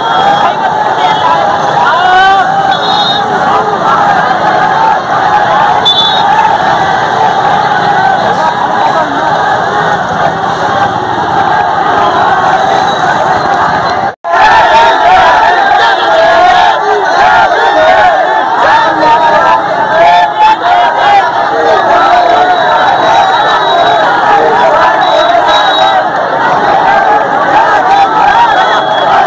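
A large crowd of young men chants and shouts loudly outdoors.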